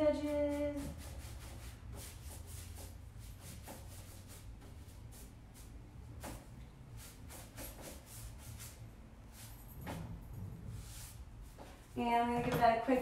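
A paintbrush brushes and taps against wood.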